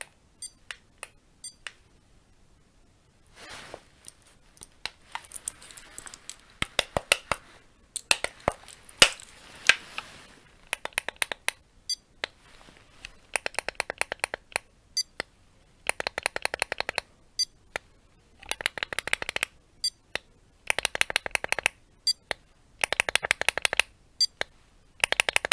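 Fingers tap and click on a plastic case close by.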